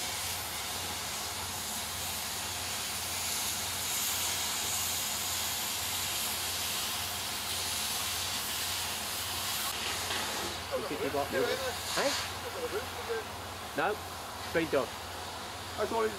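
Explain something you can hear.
A crane engine rumbles steadily in the distance.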